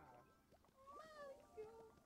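A game character jumps with a short springy sound effect.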